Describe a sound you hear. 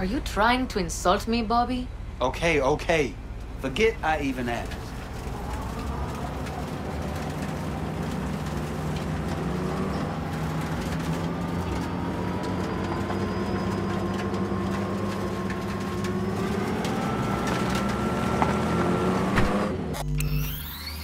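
A car engine hums steadily as the car drives and slowly rises in pitch.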